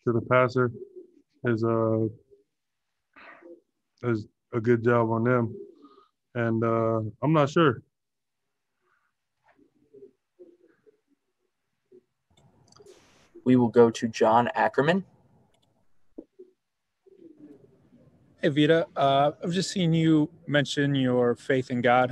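A young man speaks calmly through a microphone on an online call, with long pauses.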